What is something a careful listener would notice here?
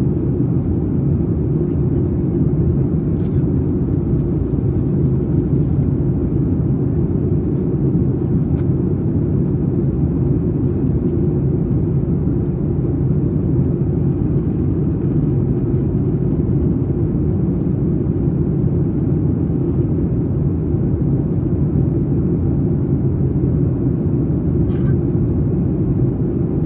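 A jet airliner's engines roar with a steady, low rumble heard from inside the cabin.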